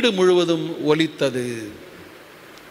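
A middle-aged man speaks calmly through a microphone in an echoing hall.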